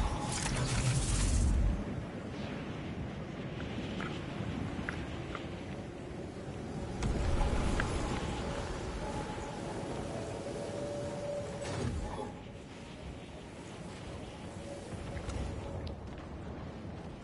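Wind rushes steadily past a glider descending through the air.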